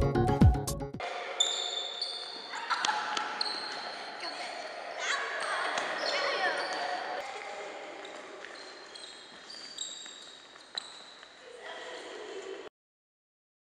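Shoes squeak and patter on a hard floor in an echoing hall.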